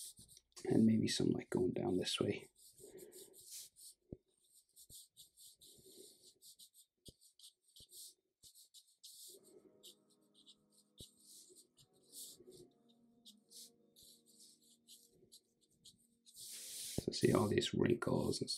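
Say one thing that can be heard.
A felt-tip marker scratches across paper in short strokes.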